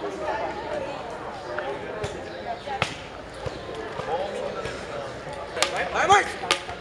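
Young men and women chatter and call out nearby outdoors.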